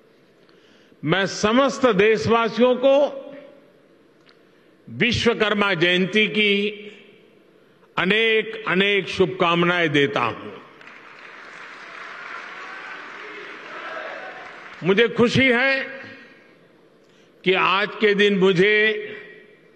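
An elderly man speaks slowly and deliberately into a microphone, in pauses.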